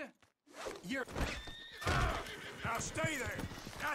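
Horse hooves clop on a dirt trail.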